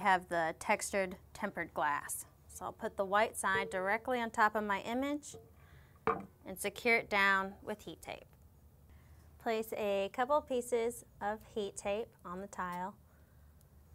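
A young woman speaks calmly and clearly into a microphone, close by.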